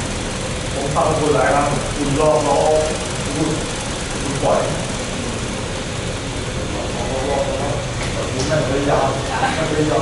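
A man calls out from across a large echoing hall.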